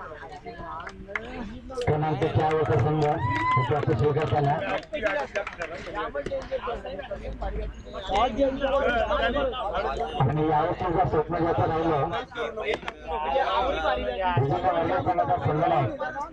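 A crowd of young men chatters and calls out loudly nearby.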